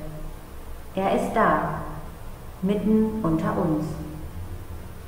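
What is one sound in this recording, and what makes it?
A woman speaks briefly into a microphone in an echoing room.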